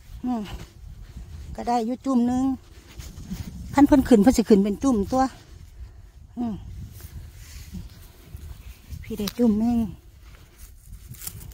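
A hand rustles through grass near the ground.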